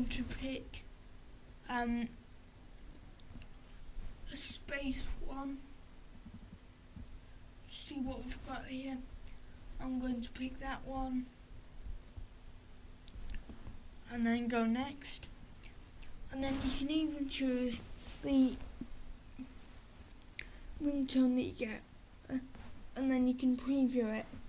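A boy talks calmly and close by.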